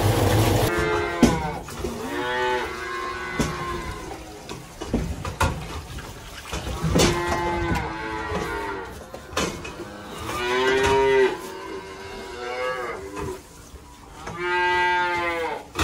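Calves moo and bleat nearby.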